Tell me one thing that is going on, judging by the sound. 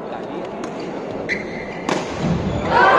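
A badminton racket strikes a shuttlecock in a large hall.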